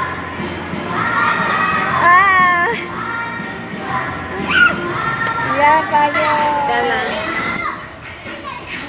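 A young child squeals and shouts playfully nearby.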